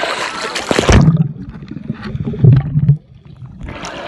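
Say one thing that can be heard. Water bubbles and gurgles, muffled underwater.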